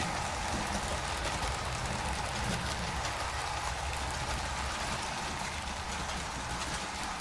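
Model train wheels click over rail joints.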